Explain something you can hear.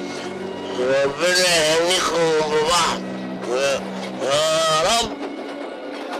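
An older man speaks with animation, close by.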